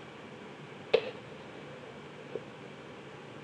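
A plastic set square clicks down onto paper.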